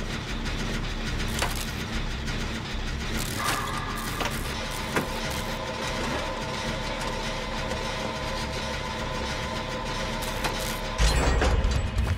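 A small engine rattles and whirs steadily while being repaired.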